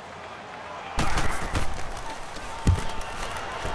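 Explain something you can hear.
Football players collide with thuds.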